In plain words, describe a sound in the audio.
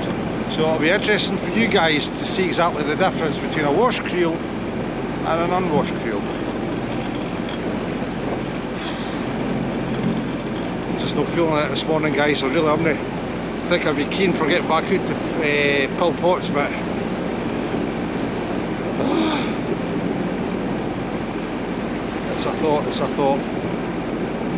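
A middle-aged man speaks calmly and close up, outdoors in wind.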